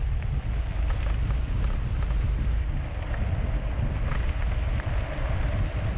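Bicycle tyres crunch and rattle over gravel.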